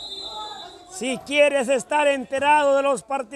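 A crowd of young men cheers and shouts loudly.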